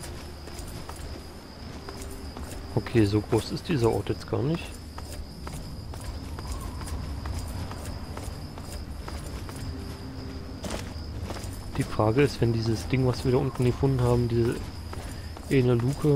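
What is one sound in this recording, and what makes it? Footsteps crunch over gravel and rubble.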